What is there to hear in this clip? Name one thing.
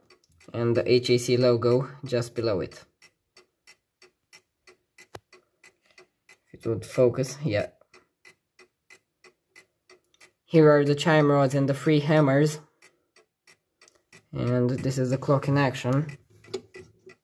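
Clock chime rods ring out a melody in short phrases with pauses between.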